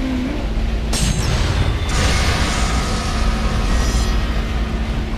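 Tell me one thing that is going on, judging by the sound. A shimmering magical chime rings out.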